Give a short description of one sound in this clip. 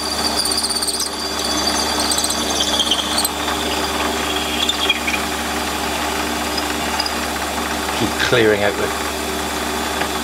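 A drill bit screeches as it bores into metal.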